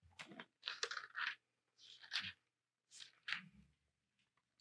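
Book pages rustle softly.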